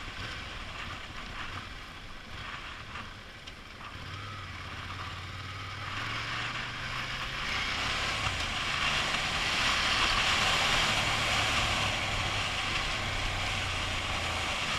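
Wind rushes past, growing louder as the ride speeds up.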